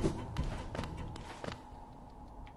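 Light footsteps patter quickly across stone.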